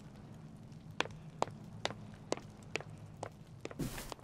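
Footsteps tap steadily on a stone floor in a large echoing hall.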